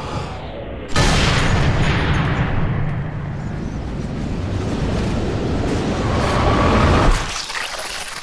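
A bullet whooshes past in a long, slowed-down rush.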